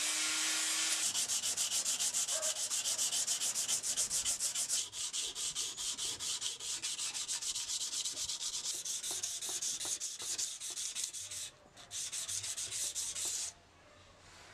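A whetstone rasps rapidly back and forth along a steel blade.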